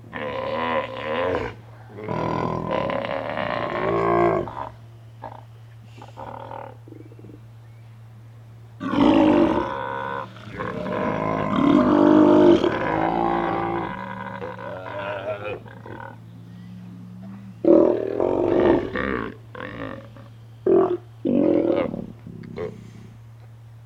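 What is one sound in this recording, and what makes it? Sea lions roar and bark in loud, deep, rough bursts close by.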